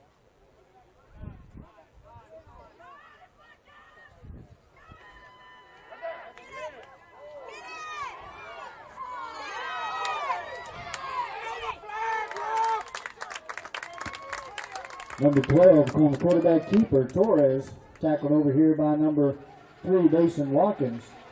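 Young men shout and cheer loudly nearby, outdoors.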